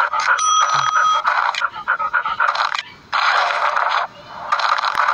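Cheerful electronic game music plays.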